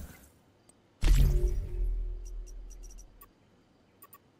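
A short rushing chime sounds as a purchase confirms.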